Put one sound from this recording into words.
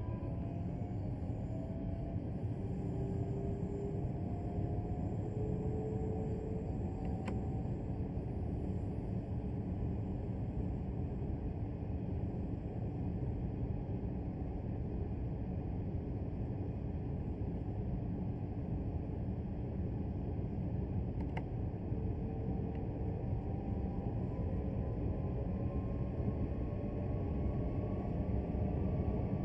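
An electric train rumbles steadily along the rails.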